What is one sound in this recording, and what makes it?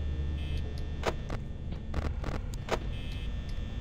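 A monitor flips up with a clattering click.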